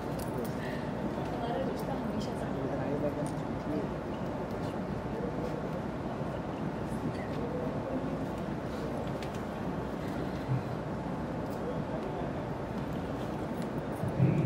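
A crowd of men and women chatter.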